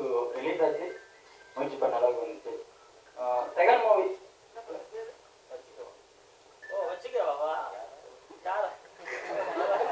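A young man speaks into a microphone over a loudspeaker, pausing between phrases.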